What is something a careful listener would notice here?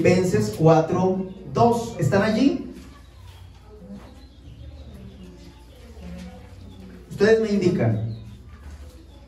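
A young man reads aloud calmly into a microphone, close by.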